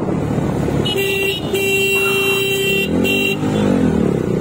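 A vehicle horn honks nearby.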